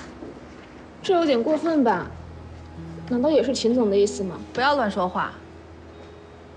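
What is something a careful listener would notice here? A young woman speaks quietly and close.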